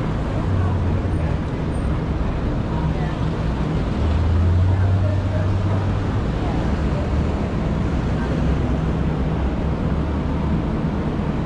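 Footsteps tap on a pavement.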